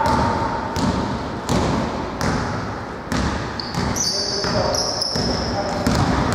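A basketball bounces on a wooden court, echoing in a large hall.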